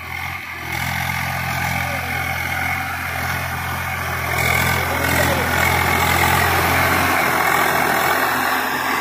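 A tractor engine rumbles steadily close by, growing louder as it approaches.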